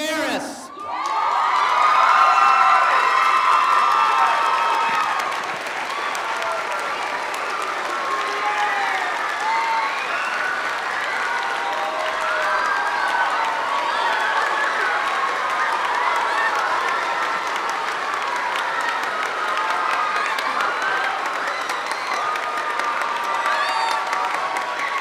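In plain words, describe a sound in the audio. A large crowd of children and adults cheers and screams in an echoing hall.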